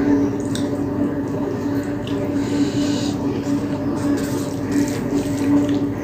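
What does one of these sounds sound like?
Fingers squish and mix rice and curry on a plate.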